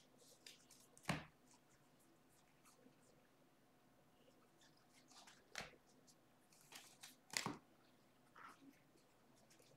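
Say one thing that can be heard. Trading cards slide and flick against each other as hands shuffle them.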